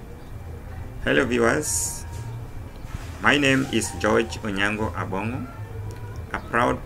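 A middle-aged man speaks calmly and close up, with pauses.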